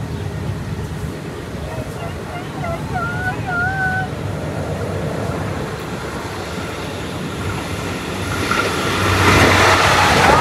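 A diesel train rumbles as it approaches and grows louder.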